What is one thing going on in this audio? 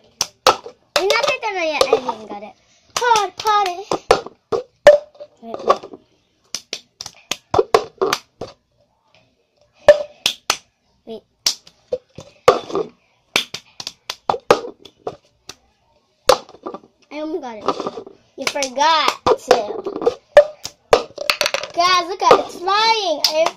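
A young girl sings and talks close by, with animation.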